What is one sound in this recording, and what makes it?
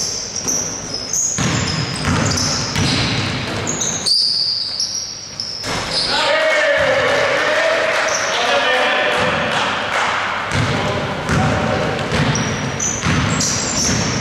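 A basketball bounces with hollow thuds on the court.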